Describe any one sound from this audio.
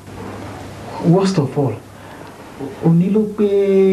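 A man speaks calmly and earnestly close by.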